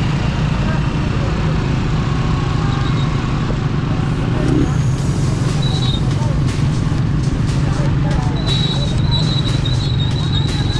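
A small motorbike engine hums steadily close by.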